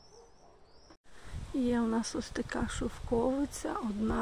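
Wind rustles through leaves close by.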